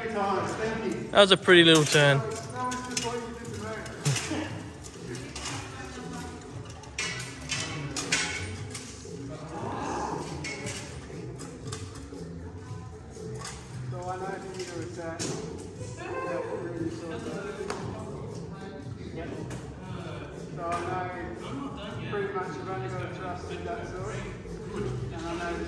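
Steel swords clash and clang in a large echoing hall.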